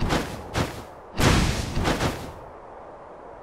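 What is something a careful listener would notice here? Magical bursts whoosh and crackle in quick succession.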